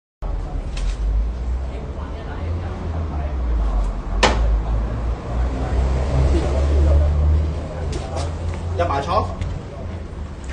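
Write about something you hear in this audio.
A middle-aged man speaks loudly and argues nearby.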